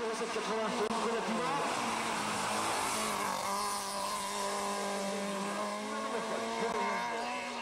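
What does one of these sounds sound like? A rally car engine revs hard as the car speeds past.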